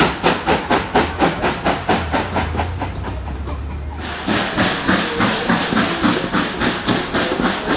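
Train carriages rumble and clatter along the rails.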